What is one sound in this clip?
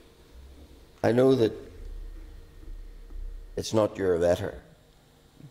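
A man speaks briefly through a microphone in a large, echoing room.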